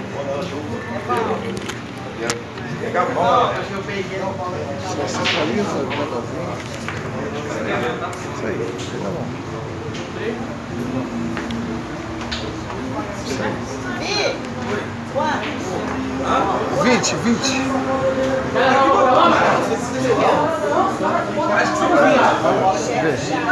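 Several young men talk and call out loudly nearby.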